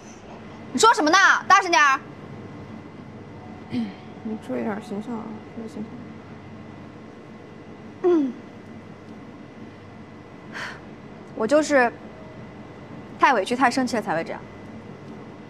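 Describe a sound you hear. A young woman speaks sharply and close by.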